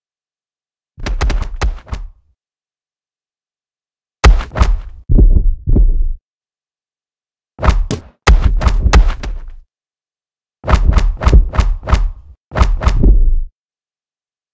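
Gloved punches land with sharp, heavy thuds in quick bursts.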